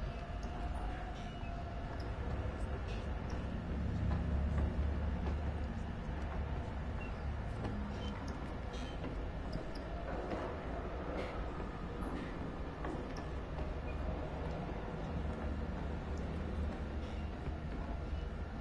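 Footsteps thud slowly on a wooden floor.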